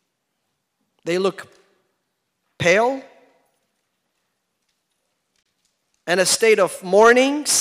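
A man speaks with emotion into a microphone, in short bursts with long pauses.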